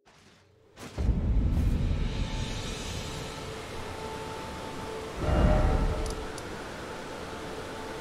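Wind and rain hiss steadily outdoors.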